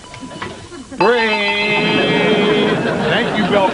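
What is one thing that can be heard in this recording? A large bell clangs loudly and rings on.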